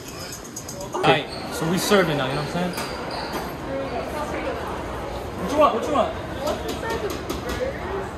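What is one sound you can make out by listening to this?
Young people talk and call out in a busy, echoing room.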